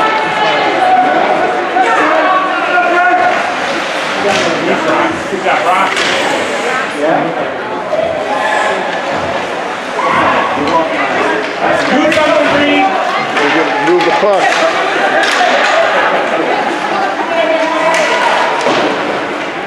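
Spectators chatter and call out nearby throughout, in a large echoing hall.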